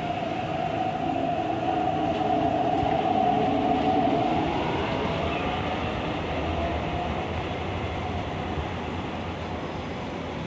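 An electric commuter train pulls away from a platform, its traction motors whining.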